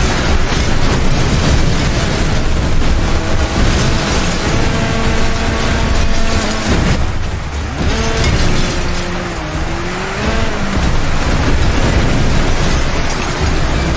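Metal crunches as cars smash into each other.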